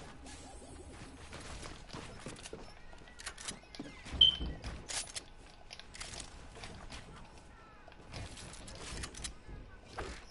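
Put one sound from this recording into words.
Wooden building pieces clatter and thud into place in quick bursts.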